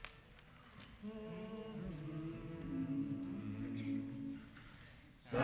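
A mixed choir of men and women sings a hymn together in an echoing hall.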